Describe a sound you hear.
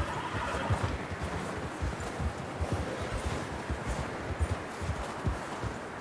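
Horses' hooves thud rapidly through snow.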